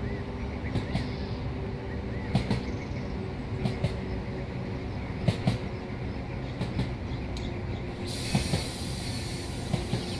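Train wheels clack over rail joints in pairs.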